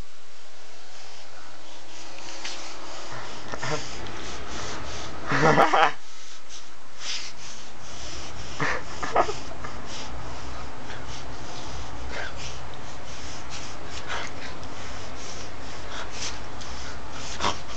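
A small dog growls and snarls up close.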